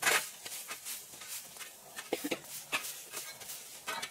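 A shovel scrapes along concrete.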